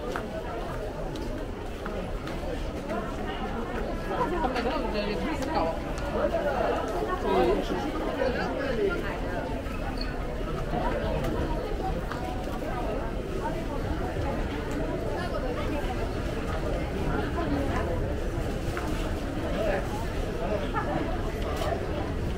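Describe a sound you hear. A crowd of people murmurs and chatters in a large echoing hall.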